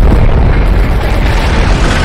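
A truck engine rumbles as the truck drives.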